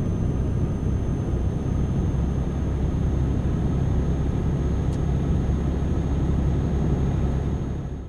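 A truck engine rumbles steadily as it drives along.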